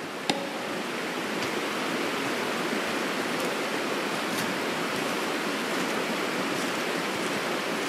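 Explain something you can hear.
Footsteps crunch and rustle through dry leaves.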